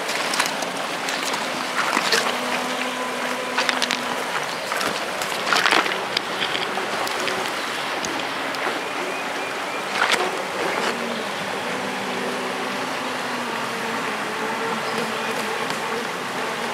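A river rushes and burbles steadily over stones.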